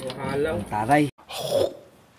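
A man speaks up close with animation.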